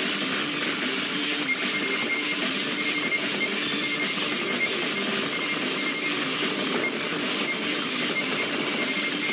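Rapid electronic shooting sounds fire nonstop in a video game.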